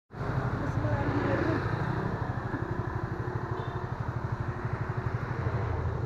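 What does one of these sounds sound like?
A motorcycle engine idles close by with a steady, rapid throb.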